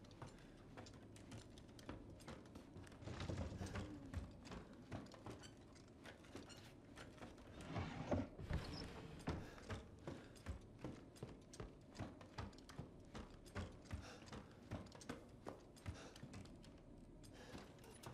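Footsteps thud steadily on creaking wooden floorboards.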